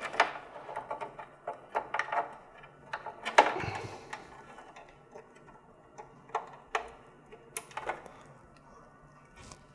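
Plastic parts click and wires rustle close by.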